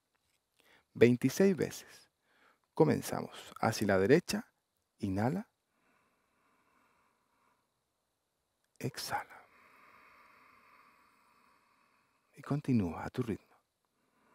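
An adult man speaks calmly.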